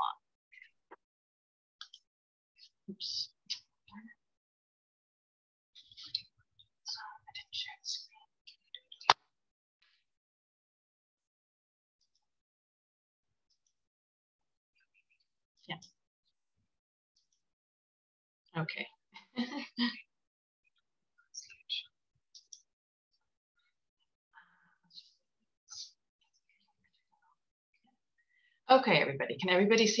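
An older woman speaks calmly through an online call.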